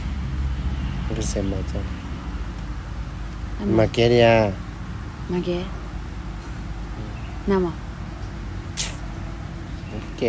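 A young man talks close by.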